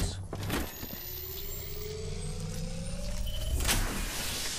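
A device charges up with a rising electric whine.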